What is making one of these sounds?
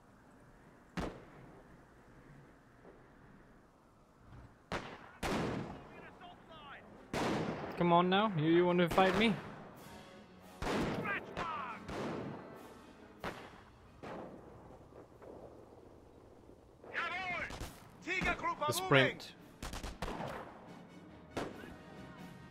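Gunshots and blasts crack in short, scattered bursts.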